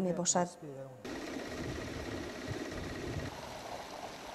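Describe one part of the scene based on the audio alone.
A pump motor hums steadily.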